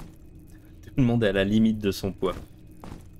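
A man speaks briefly and casually into a nearby microphone.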